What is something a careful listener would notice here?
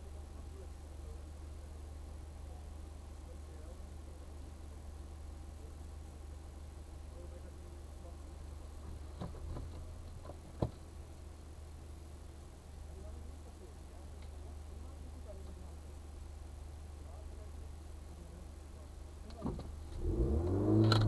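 A car engine idles, heard from inside the car.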